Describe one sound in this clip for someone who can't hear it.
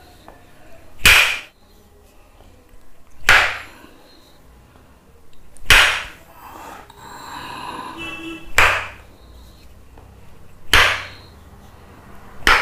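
A wooden block sweeps across bare skin in loud, rasping strokes every couple of seconds.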